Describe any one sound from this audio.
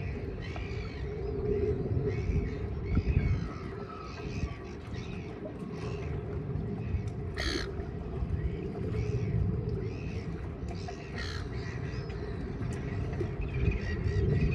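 Small waves lap against rocks along the shore.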